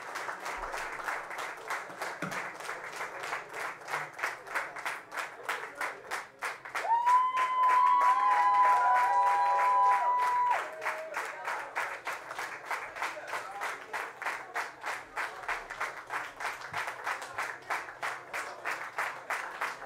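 A large crowd applauds steadily.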